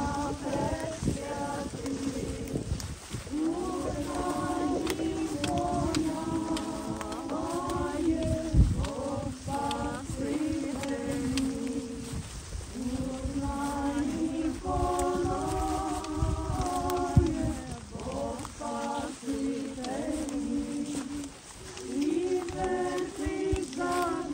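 Many footsteps shuffle over dry leaves.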